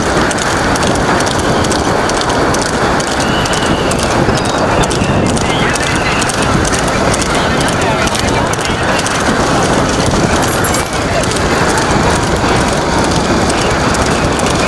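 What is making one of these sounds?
A horse's hooves clatter quickly on a paved road.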